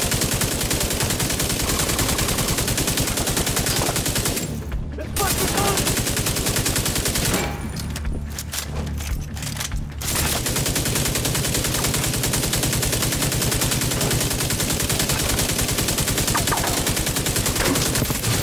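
Rapid gunfire rattles in fast, steady bursts.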